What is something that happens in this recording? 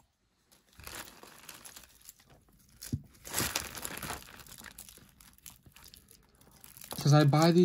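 Metal bangles and beads clink and rattle as hands rummage through a pile of jewellery.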